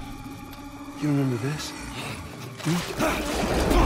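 A man groans and grunts in pain, close by.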